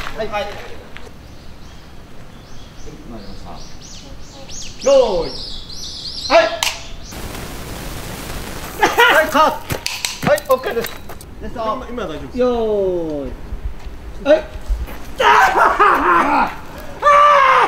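A man shouts forcefully nearby.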